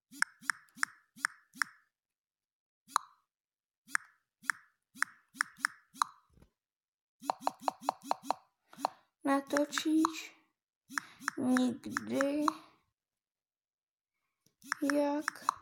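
Keyboard taps click in quick succession on a phone.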